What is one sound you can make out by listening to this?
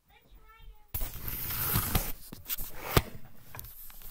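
Something rubs and scrapes loudly right against the microphone.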